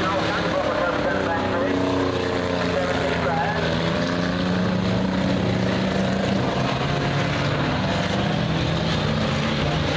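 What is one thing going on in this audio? Race car engines roar loudly as cars speed around a dirt track.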